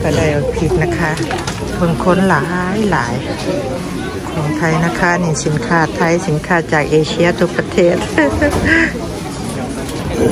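A crowd of shoppers murmurs indoors.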